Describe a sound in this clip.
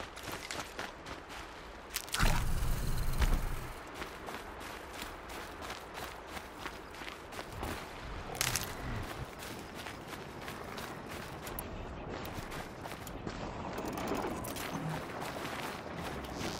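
A young woman speaks quietly into a close microphone.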